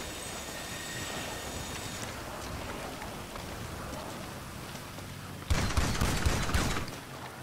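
Rain patters steadily all around.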